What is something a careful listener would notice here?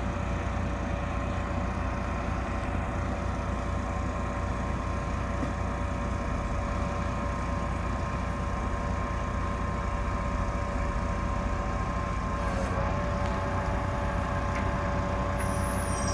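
A crane's hydraulics whine steadily.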